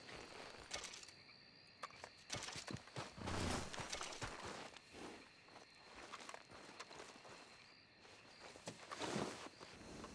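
Footsteps crunch on rough, stony ground.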